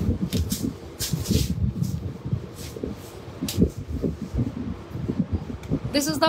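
A small cardboard box rustles and taps in someone's hands.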